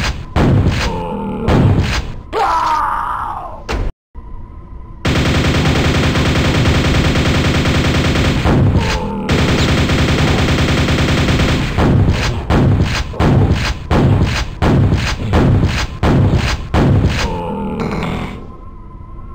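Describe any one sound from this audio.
A double-barrelled shotgun fires again and again in a video game.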